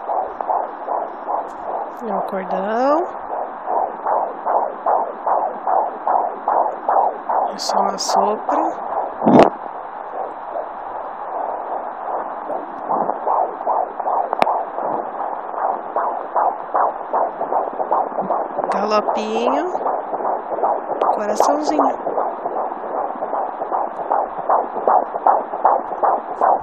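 A fast heartbeat whooshes and thumps steadily through a small monitor speaker.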